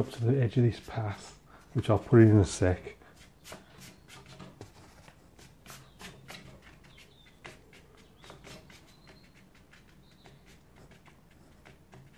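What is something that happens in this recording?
A brush softly strokes wet paint onto paper.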